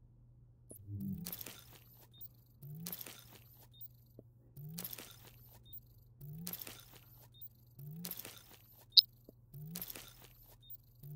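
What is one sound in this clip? A game's crafting sound effect swells up with a rising whoosh again and again.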